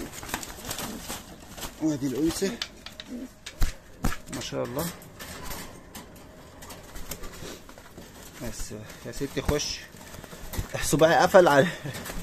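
A pigeon coos softly close by.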